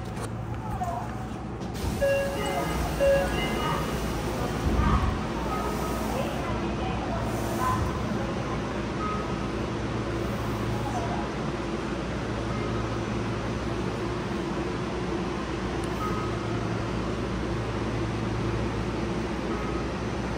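A train rumbles along steadily with a low hum.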